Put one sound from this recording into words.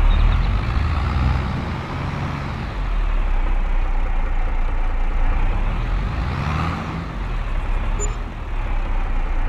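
A tractor engine rumbles steadily, rising and falling in pitch as it drives.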